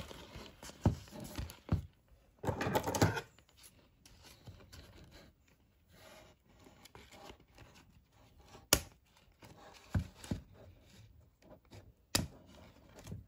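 Scissors snip through cardboard packaging.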